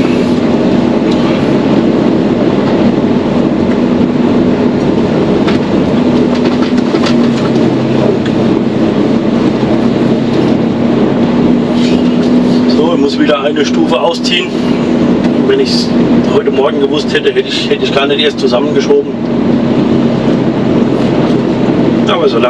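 A heavy diesel truck engine drones from inside the cab as the truck rolls slowly.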